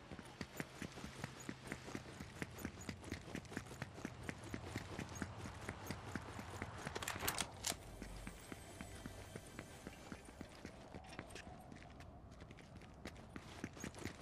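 Footsteps run quickly and evenly on a hard surface.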